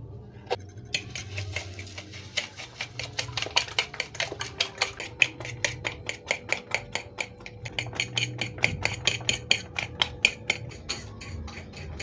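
A fork beats eggs in a ceramic bowl with quick, rapid clicks.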